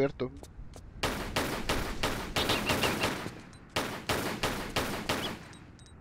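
Pistols fire in rapid bursts of shots.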